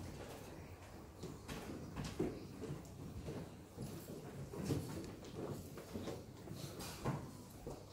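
Footsteps shuffle softly on a floor.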